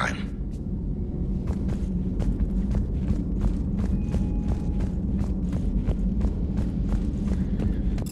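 Footsteps tap steadily on a metal floor.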